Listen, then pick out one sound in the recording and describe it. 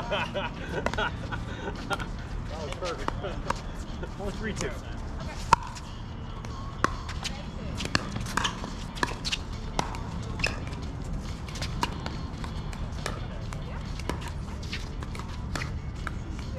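Paddles pop against plastic balls in quick, irregular rallies.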